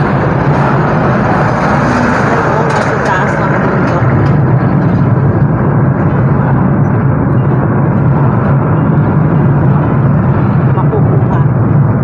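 A vehicle's engine rumbles steadily as it drives along a road.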